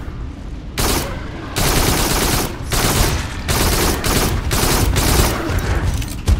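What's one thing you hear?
A gun fires in rapid bursts of loud shots.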